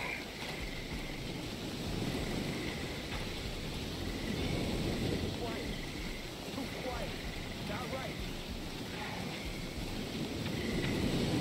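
Grass and leaves rustle softly as someone crawls through undergrowth.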